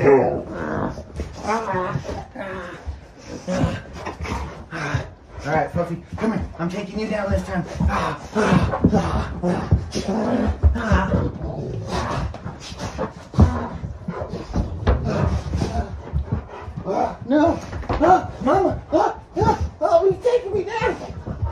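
A young man talks and laughs playfully up close.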